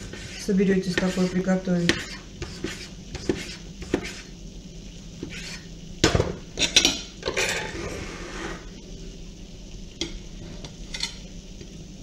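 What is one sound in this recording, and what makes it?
A knife taps on a plastic cutting board as a tomato is sliced.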